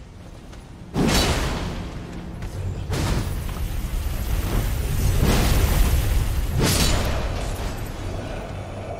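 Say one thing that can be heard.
Sword blows and weapon swings whoosh and strike in sharp bursts.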